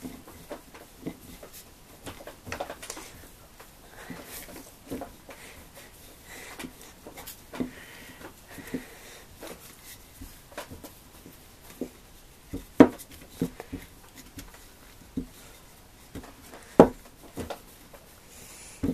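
A wooden rolling pin rolls and knocks softly on dough.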